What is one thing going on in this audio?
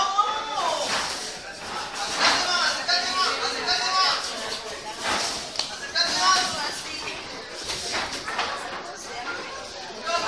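Boxing gloves thump against bodies.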